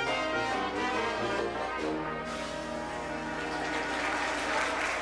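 A small brass band plays a lively jazz tune up close.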